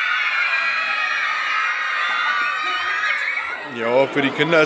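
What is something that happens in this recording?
A crowd of children sings loudly together.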